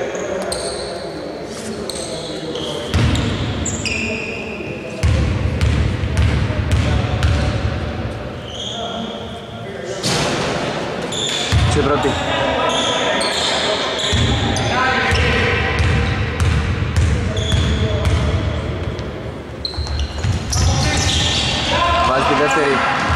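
A basketball bounces on a hard court in an echoing hall.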